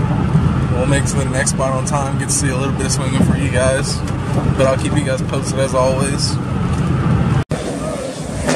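Tyres hum steadily on a highway from inside a moving car.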